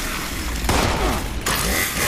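An electric weapon crackles and zaps.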